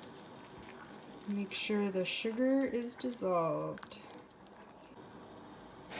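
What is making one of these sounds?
A spatula scrapes and stirs inside a metal pot.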